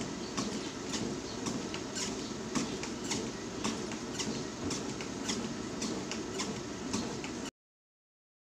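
Footsteps thud rhythmically on a treadmill belt.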